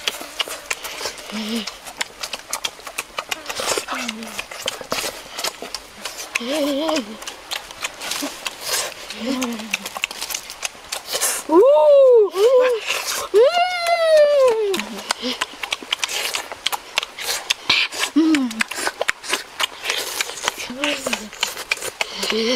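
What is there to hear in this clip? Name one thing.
Boys chew and crunch food up close.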